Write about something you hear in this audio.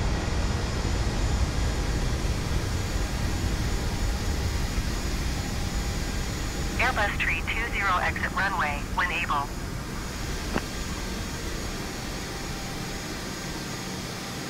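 Jet engines rumble low and steadily as an airliner rolls along a runway.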